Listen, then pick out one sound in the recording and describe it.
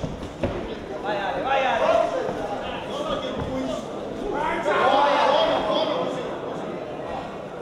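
A crowd cheers and shouts loudly.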